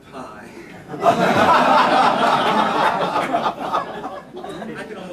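An audience laughs loudly in a large room.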